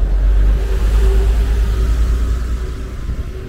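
A bus engine rumbles loudly close by as the bus pulls away.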